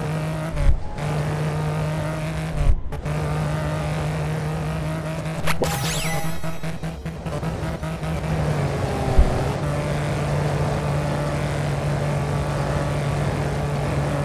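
A car engine roars steadily at high revs.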